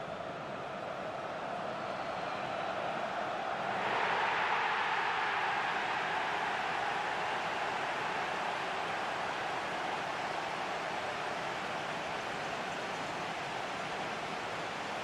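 A large crowd cheers and roars loudly, swelling up partway through.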